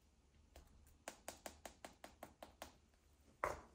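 A spice shaker rattles as it is shaken in quick, even bursts.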